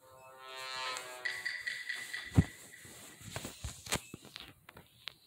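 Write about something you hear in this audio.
A dramatic electronic sting plays with a booming hit.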